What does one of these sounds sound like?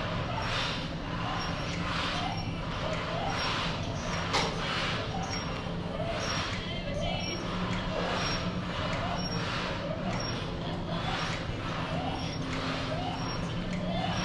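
A woman breathes hard in a steady rhythm as she swings a weight.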